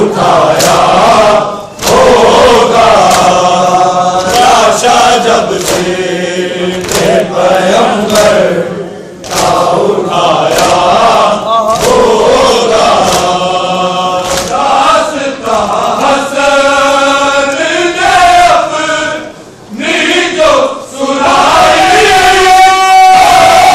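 A crowd of men chants loudly together in an echoing hall.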